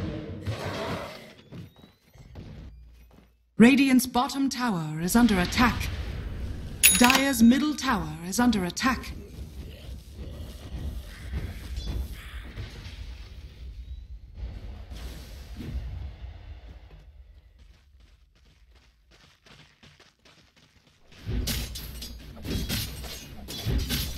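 Game spells whoosh and crackle as fantasy characters fight.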